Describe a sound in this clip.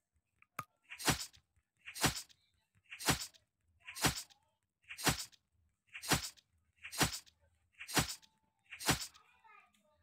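Blows land again and again in a steady rhythm.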